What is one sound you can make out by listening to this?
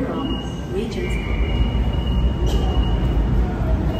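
A train rumbles slowly to a stop in an echoing station.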